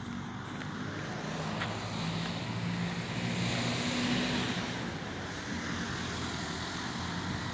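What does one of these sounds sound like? A bus drives past on a nearby road.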